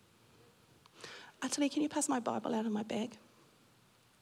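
A middle-aged woman speaks with feeling into a microphone, heard through a loudspeaker in a large room.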